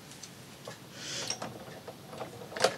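Card slides and rustles on a paper trimmer.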